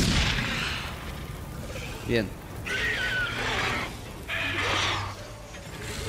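Flames crackle and burn.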